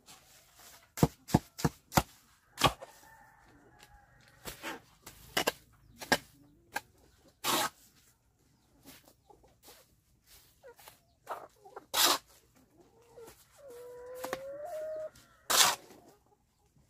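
A shovel scoops and slaps down wet concrete.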